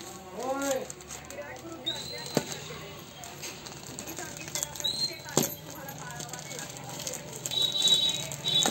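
Paper and plastic wrapping rustle and crinkle in someone's hands.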